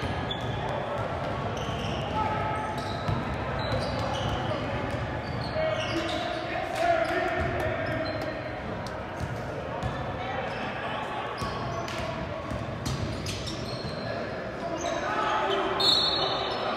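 Spectators chatter and call out in the stands.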